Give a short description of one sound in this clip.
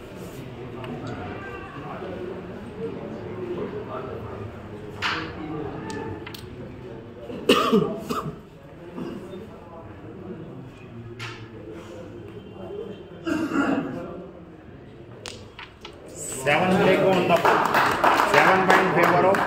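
A crowd of men chatter nearby.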